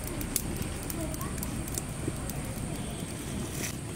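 Grains of rice patter onto a stone slab.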